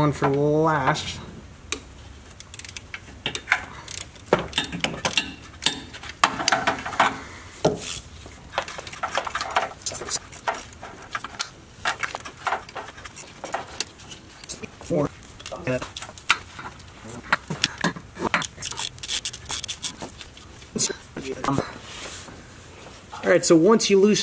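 Metal tools clink and scrape against metal parts.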